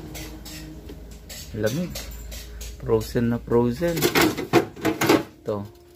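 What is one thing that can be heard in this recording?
Plastic shelves and containers rattle and click as a hand moves them.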